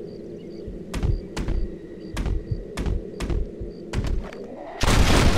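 A rifle fires several sharp shots outdoors.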